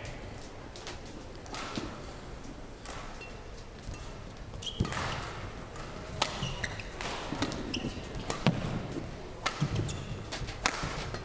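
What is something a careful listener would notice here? Badminton rackets strike a shuttlecock back and forth in a large hall.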